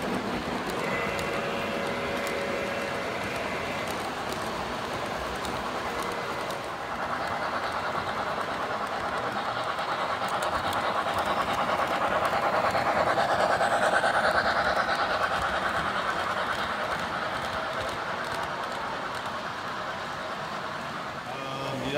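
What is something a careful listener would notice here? Model train wheels rumble and click steadily along metal tracks.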